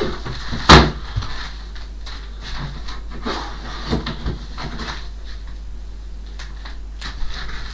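Items knock and rustle as a man rummages in a wardrobe.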